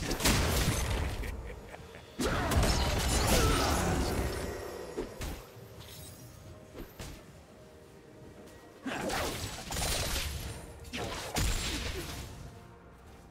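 Video game spells whoosh and burst during a battle.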